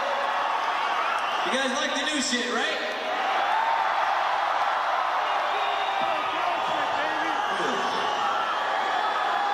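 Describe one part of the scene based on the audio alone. A crowd cheers and screams loudly in a large arena.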